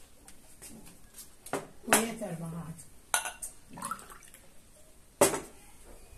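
Liquid pours from a jug into a glass.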